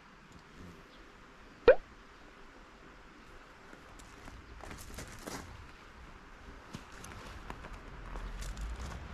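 Bags rustle and thump as luggage is lifted off a motorbike.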